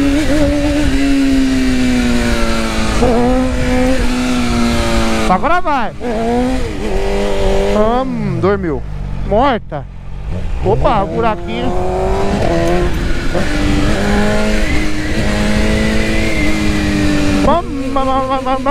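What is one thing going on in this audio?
A motorcycle engine roars loudly, revving up and down as gears shift.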